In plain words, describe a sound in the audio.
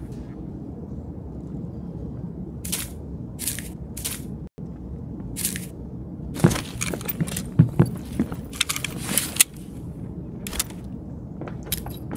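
Short clicks and rustles sound as items are handled.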